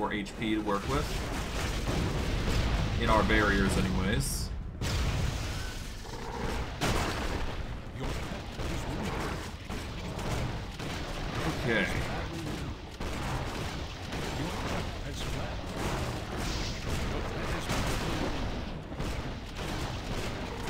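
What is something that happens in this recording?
Magic blasts crackle and boom in quick succession.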